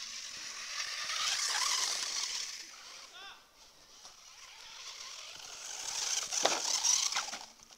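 Tyres of a toy car skid and scatter gravel on dirt.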